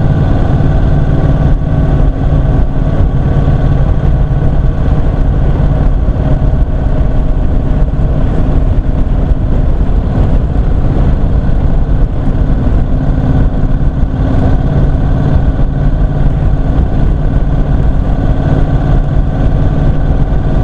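A motorcycle engine hums steadily while riding along.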